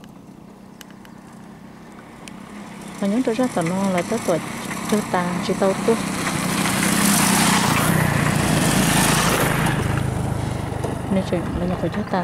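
A motorcycle engine approaches, passes close by and fades away.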